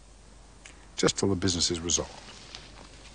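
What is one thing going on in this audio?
A middle-aged man speaks calmly and briefly, close by.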